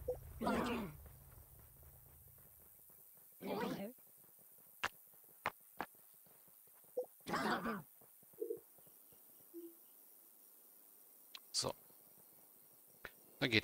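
Short game sound effects click and chirp now and then.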